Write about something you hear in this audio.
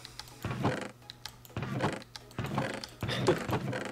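A wooden chest thuds shut.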